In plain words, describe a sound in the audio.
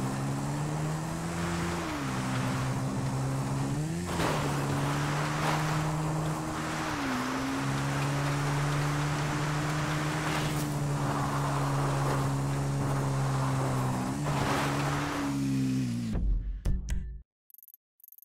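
A dirt bike engine revs and buzzes steadily, rising and falling in pitch.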